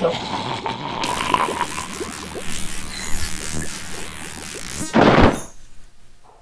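An electric zap crackles and hisses.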